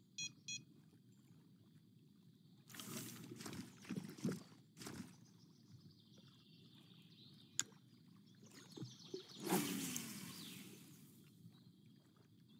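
Water laps gently and steadily.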